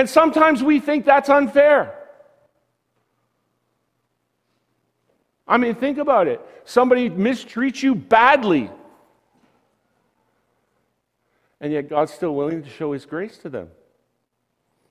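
A man speaks calmly through a microphone in a large room, pausing between phrases.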